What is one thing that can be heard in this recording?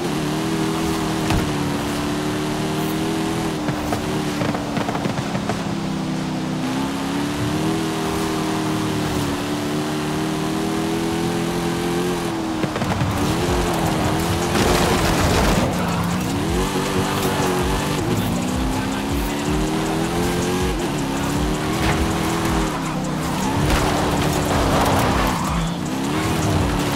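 Tyres hiss and splash on a wet road.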